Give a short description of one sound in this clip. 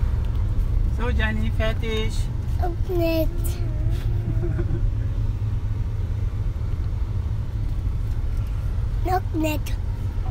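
A young child babbles and sings close by.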